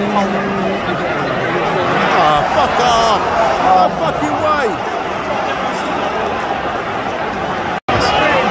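A large stadium crowd roars and chants steadily all around.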